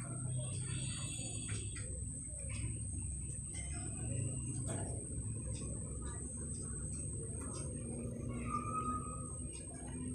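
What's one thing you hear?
A middle-aged woman talks calmly close to the microphone.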